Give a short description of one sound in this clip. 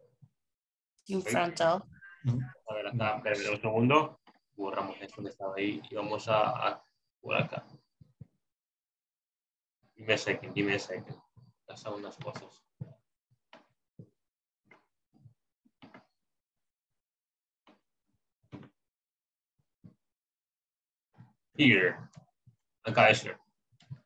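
A young man speaks calmly over an online call, with pauses.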